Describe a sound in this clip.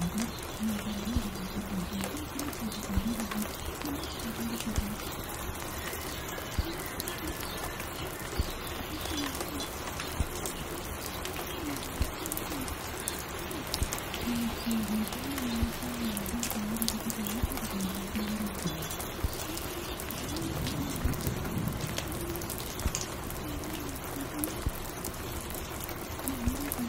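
A spinning vinyl record crackles and pops softly.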